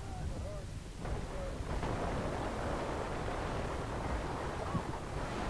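Gunfire and explosions rumble in the distance.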